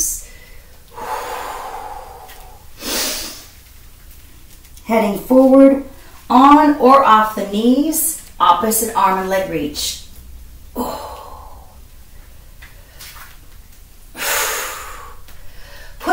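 A man breathes out loudly between his words.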